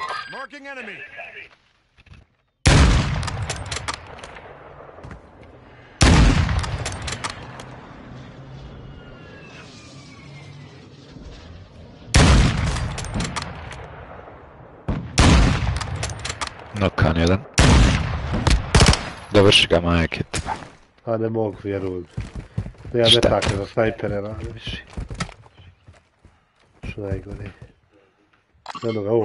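A rifle's bolt clacks as it is worked.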